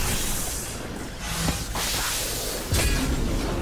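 Lightning crackles sharply.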